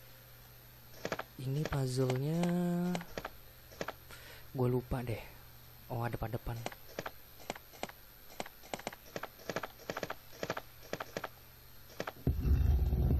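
Footsteps tap steadily on a hard tiled floor.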